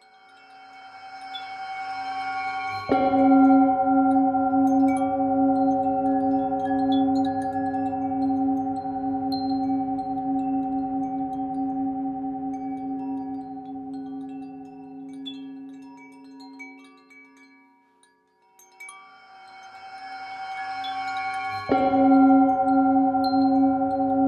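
A metal singing bowl is struck and rings with a long, wavering hum that slowly fades.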